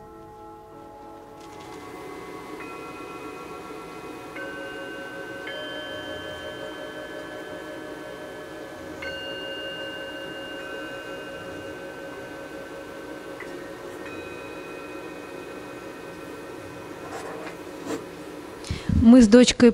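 A woman strikes singing bowls that ring with long, overlapping tones.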